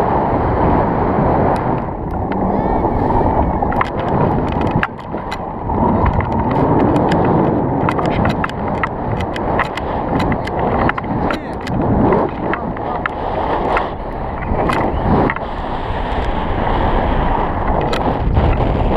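Wind roars loudly against a microphone.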